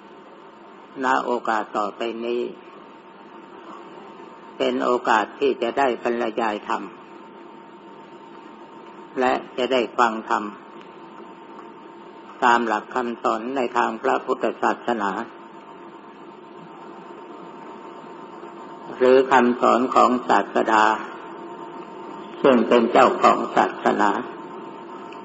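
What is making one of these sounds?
An elderly man speaks slowly and calmly in short phrases, with pauses between them.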